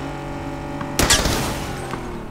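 A car crashes into a vehicle with a loud thud.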